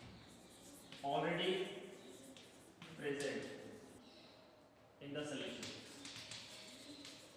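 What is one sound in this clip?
A man speaks calmly, lecturing in a slightly echoing room.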